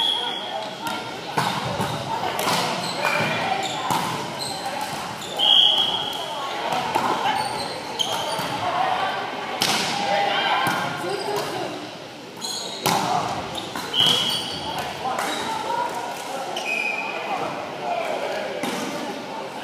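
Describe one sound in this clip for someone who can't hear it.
A volleyball is struck and thuds, echoing in a large hall.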